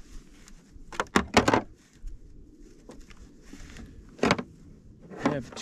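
Plastic items clatter and knock as a man rummages in a case.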